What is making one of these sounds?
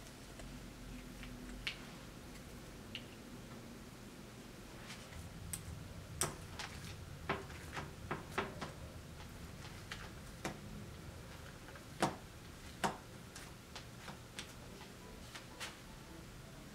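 A plastic scoop taps and presses dough onto a baking tray.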